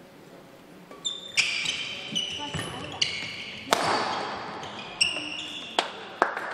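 Shoes squeak sharply on an indoor court floor.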